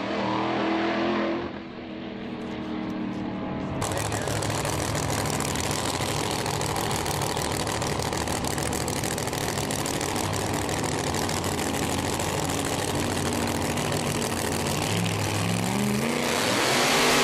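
A drag racing engine idles with a loud, deep rumble.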